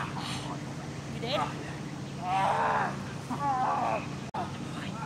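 A dog growls and whines close by.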